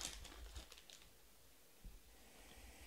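Trading cards rustle as they are handled.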